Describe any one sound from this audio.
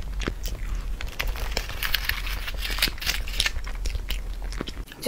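A plastic cup crinkles as it is handled up close.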